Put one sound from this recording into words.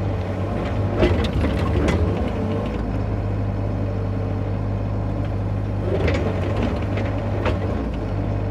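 An excavator bucket scrapes and thuds into soil.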